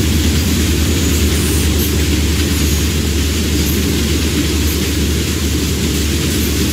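Train wheels clatter rhythmically over the rail joints.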